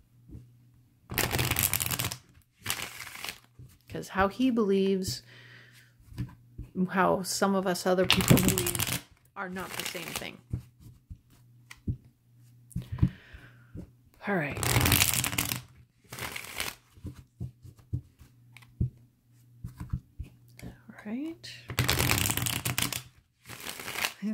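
Playing cards tap and click as hands square the deck.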